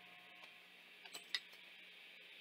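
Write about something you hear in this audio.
A hand tool clicks sharply a few times.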